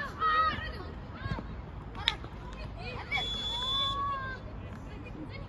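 Young boys shout across an open outdoor field.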